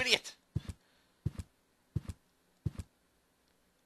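Footsteps tap at an even pace.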